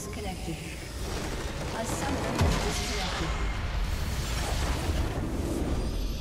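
A tower crumbles and explodes with a loud rumbling blast.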